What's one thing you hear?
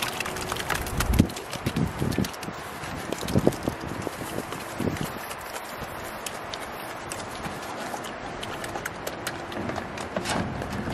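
Pigs grunt and snuffle while eating from a bowl.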